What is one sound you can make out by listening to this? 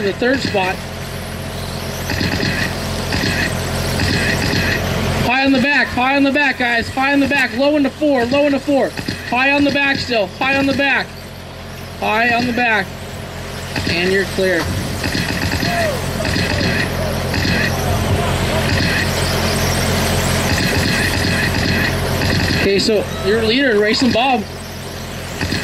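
Small electric model cars whine loudly as they speed past, their motors rising and falling in pitch.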